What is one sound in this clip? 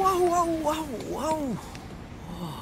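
A young man cries out in a wobbling, startled voice.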